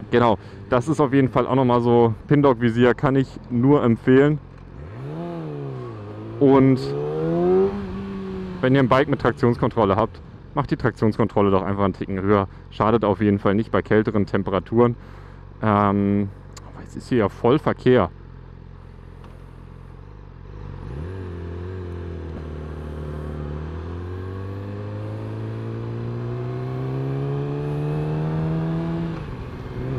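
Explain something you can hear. A motorcycle engine hums and revs as the bike accelerates.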